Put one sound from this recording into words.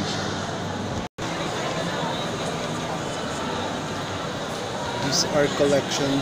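A crowd of people murmurs in a large echoing hall.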